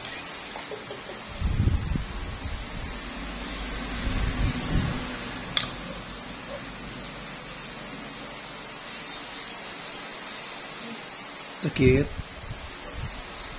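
A small metal tool scrapes softly against a toenail.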